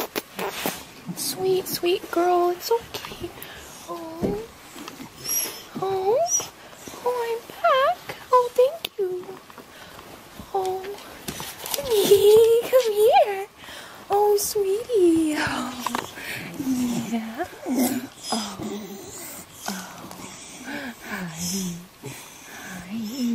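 A dog whines and yelps close by in short, rising and falling cries.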